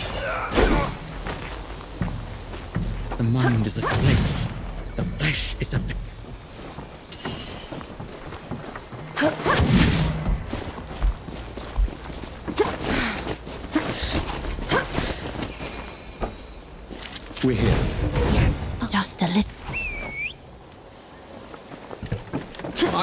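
Footsteps crunch quickly over dirt and undergrowth.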